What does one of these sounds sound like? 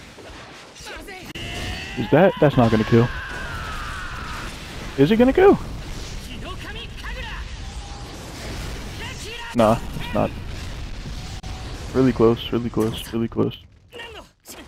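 Sword slashes whoosh with roaring bursts of fire.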